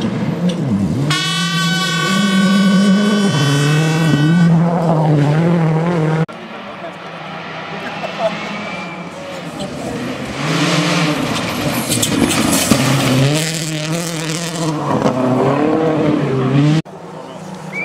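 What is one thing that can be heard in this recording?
A rally car engine roars loudly and revs up and down as the car speeds past.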